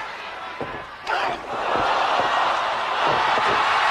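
A body slams onto a mat with a heavy thud.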